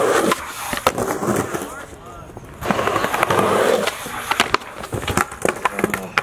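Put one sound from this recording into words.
A skateboard clatters and knocks against the ground.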